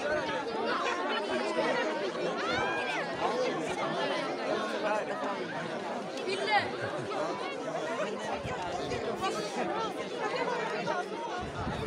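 A crowd of excited children chatter and shout close by, outdoors.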